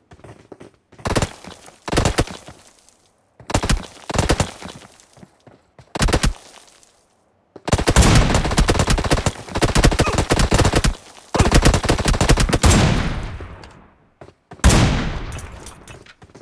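Loud rifle shots ring out in a game, with a sharp echo after each.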